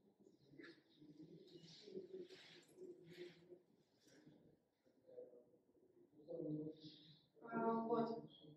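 A young woman speaks calmly at some distance in a room.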